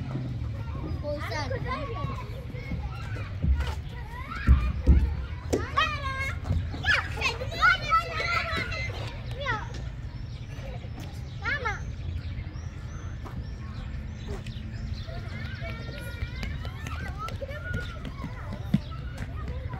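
A young child calls out and chatters nearby.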